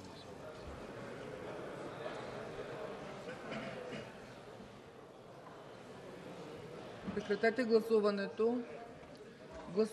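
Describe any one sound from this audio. Many people murmur and talk quietly in a large hall.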